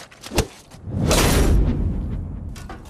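A sword strikes a wooden training dummy with a heavy thud.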